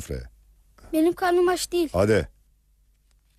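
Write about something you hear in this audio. A boy speaks close by.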